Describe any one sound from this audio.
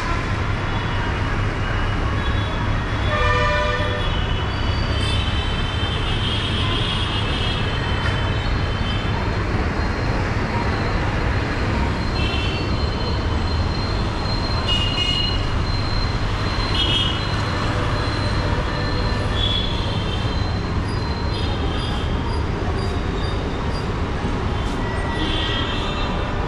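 Traffic rumbles steadily on a busy street below.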